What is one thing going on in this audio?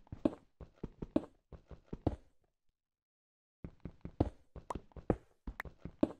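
Gravelly blocks crunch in quick, repeated bursts as they are dug away.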